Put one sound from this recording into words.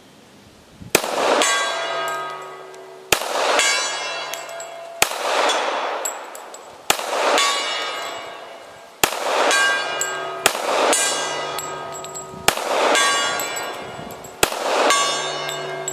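Gunshots crack outdoors, one after another.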